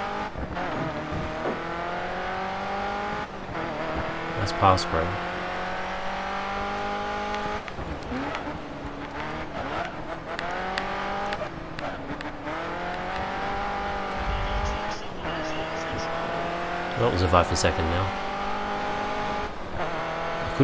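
A racing car engine roars, rising in pitch as it speeds up and dropping sharply at each gear change.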